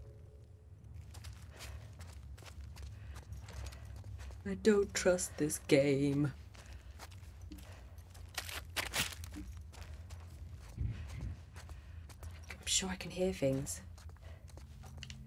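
Soft footsteps shuffle over debris on the floor.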